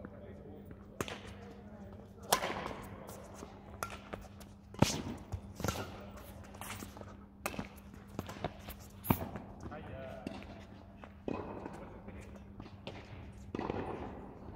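Rackets hit a shuttlecock back and forth with sharp pops.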